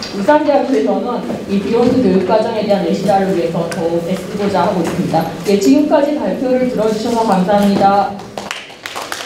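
A woman speaks into a microphone over loudspeakers in a large room.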